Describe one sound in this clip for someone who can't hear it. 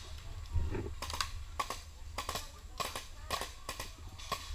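A paintball marker fires in quick sharp pops.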